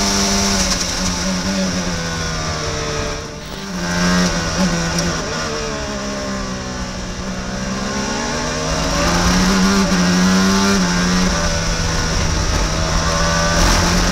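A racing car engine drops in pitch as it brakes and downshifts, then revs up again.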